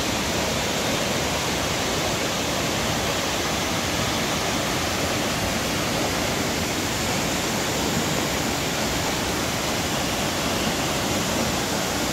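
A waterfall roars steadily outdoors.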